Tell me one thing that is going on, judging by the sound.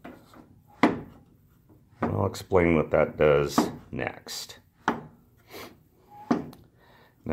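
Wooden levers clack as a hand presses them.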